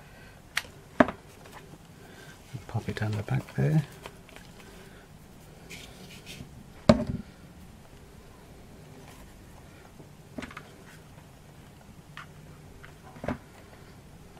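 Small objects knock lightly on a hard surface.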